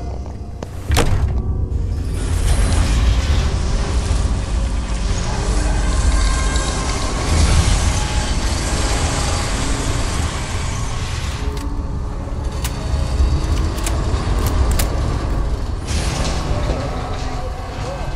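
A huge metal door grinds and rumbles loudly as it rolls open.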